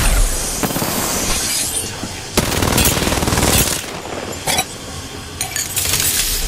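Gas hisses loudly close by.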